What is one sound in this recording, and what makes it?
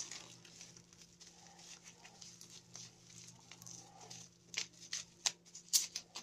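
Bubble wrap crackles softly as hands turn it over.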